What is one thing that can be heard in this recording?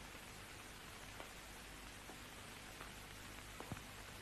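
Footsteps tap on a hard stone floor.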